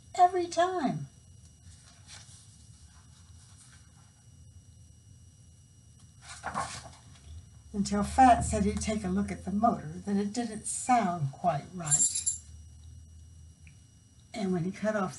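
An older woman reads aloud expressively, heard close through a microphone.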